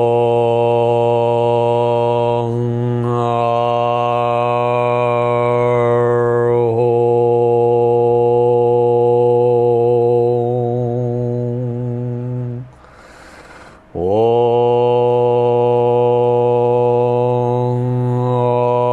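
A middle-aged man chants a long, steady low tone close to a microphone.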